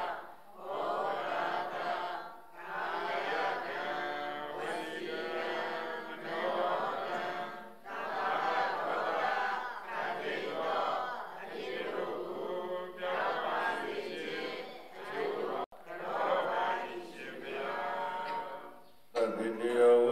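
A group of men and women chant a prayer together in unison.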